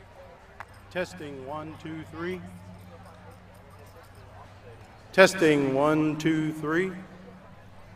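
A man announces over a loudspeaker outdoors, with a slight echo.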